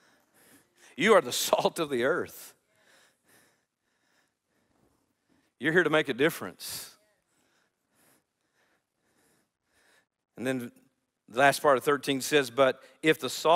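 A middle-aged man speaks with animation through a headset microphone, with pauses.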